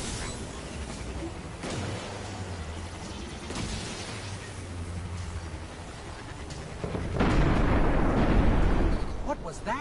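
A hovering vehicle's engine hums and roars steadily as it speeds along.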